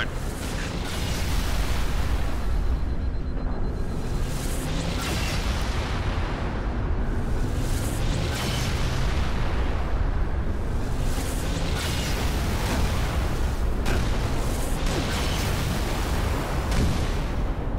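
Explosions blast and rumble nearby.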